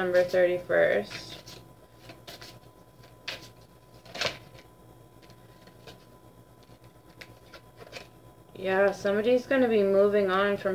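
Playing cards riffle and tap as they are shuffled.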